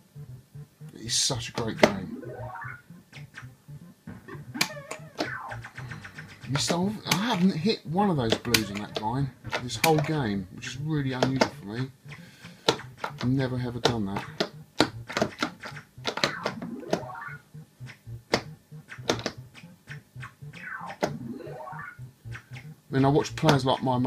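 An arcade game plays bleeping tones that glide up and down.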